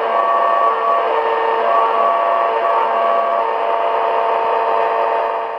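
Static hisses steadily from a small radio.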